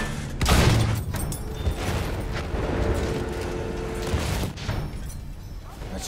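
Shells explode in the distance.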